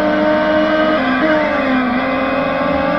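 A car engine's pitch drops as it slows for a corner.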